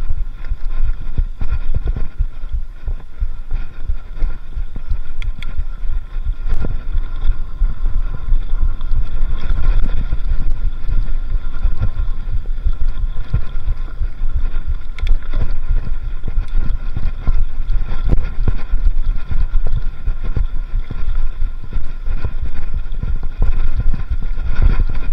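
Bicycle tyres rattle and bump over a rough dirt trail.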